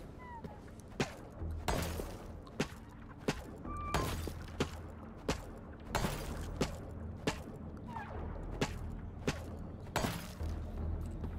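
Rock chunks crack and shatter in sharp, repeated bursts.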